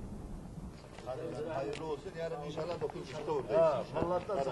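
Men's voices rise in lively greeting up close.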